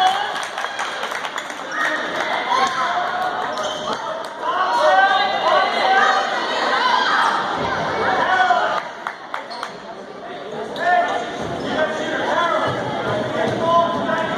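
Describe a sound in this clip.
Spectators cheer and shout from the stands.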